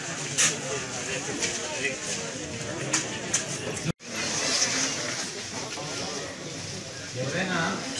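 Several people talk at once nearby, in a busy crowd.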